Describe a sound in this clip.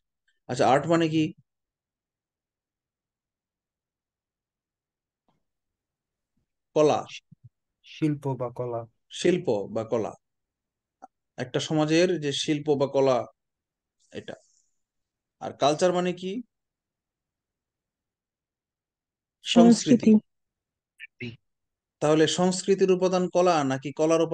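A man speaks calmly into a close microphone, with pauses between phrases.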